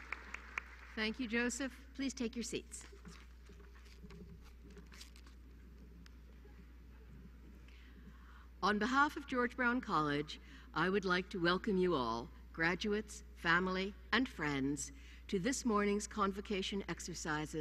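An elderly woman speaks through a microphone in a large hall.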